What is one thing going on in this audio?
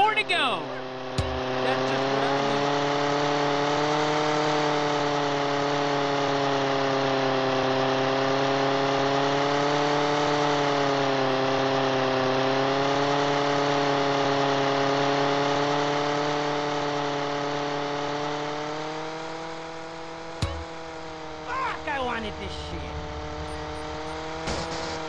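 A small propeller plane engine drones steadily, rising and falling slightly in pitch.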